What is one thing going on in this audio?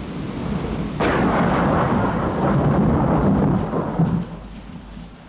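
Rain patters steadily on an umbrella.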